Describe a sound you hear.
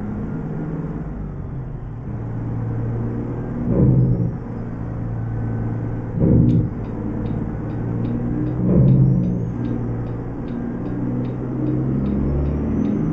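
A truck engine rumbles steadily and shifts in pitch as it changes gear.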